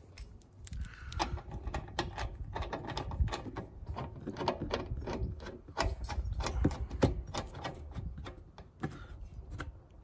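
A metal hose fitting clicks and scrapes as a hand screws it on.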